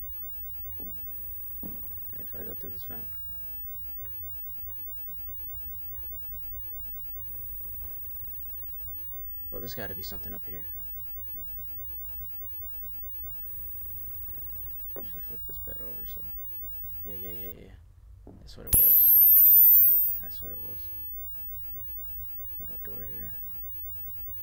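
A young man speaks quietly and briefly into a close microphone.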